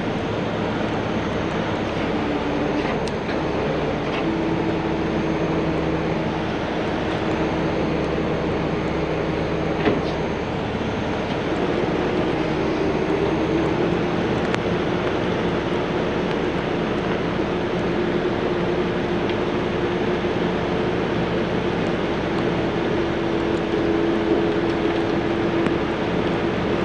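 Rain patters on the road and the truck.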